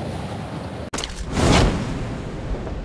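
A parachute snaps open with a sudden whoosh.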